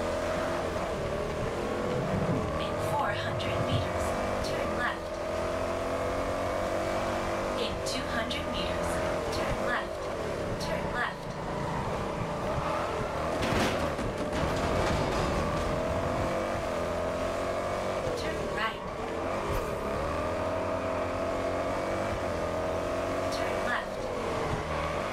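A sports car engine roars steadily, its pitch rising and falling with gear shifts.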